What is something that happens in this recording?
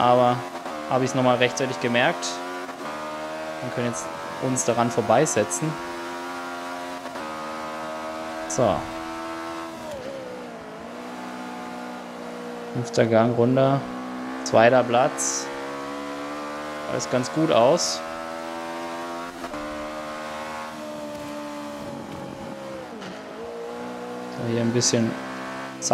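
A racing car engine roars loudly, its pitch climbing and dropping as it shifts gears and slows for corners.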